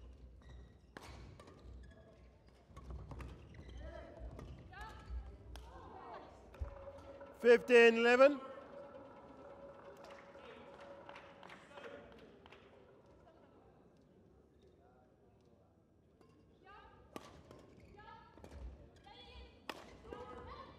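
Rackets strike a shuttlecock with sharp taps in a large echoing hall.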